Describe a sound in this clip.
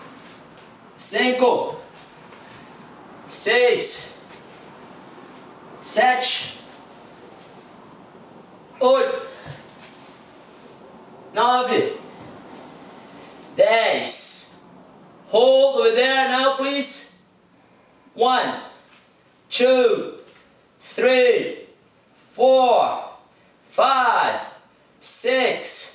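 A man speaks in short, even bursts nearby, as if counting out loud.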